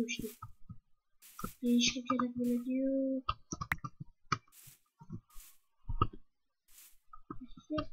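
Footsteps crunch softly on grass at an even pace.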